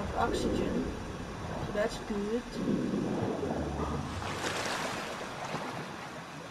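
Water splashes as a swimmer surfaces.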